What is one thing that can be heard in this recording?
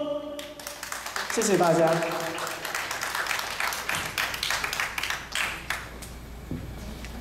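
An audience claps and applauds indoors.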